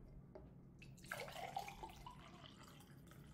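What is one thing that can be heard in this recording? Water pours from a jug into a glass.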